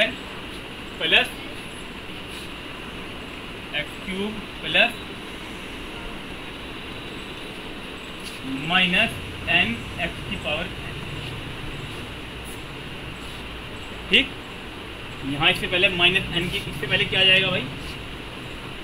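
A man speaks calmly, explaining.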